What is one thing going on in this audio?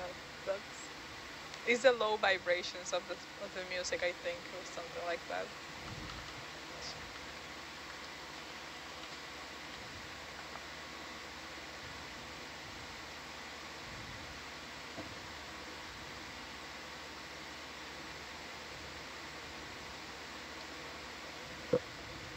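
A low, steady underwater hush fills the quiet.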